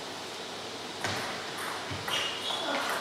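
A table tennis ball clicks against paddles and the table in an echoing hall.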